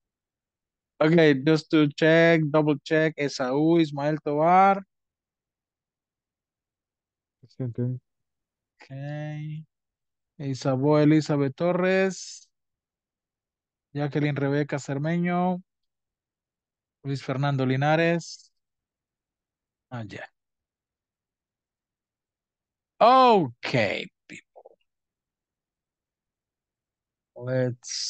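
A man speaks with animation over an online call, in bursts with pauses.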